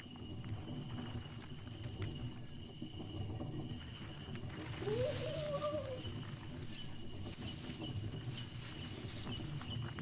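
Leaves rustle as something pushes through dense ferns.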